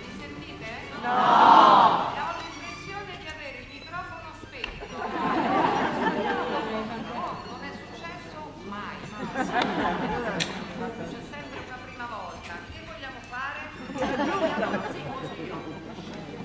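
A theatre audience bursts into laughter.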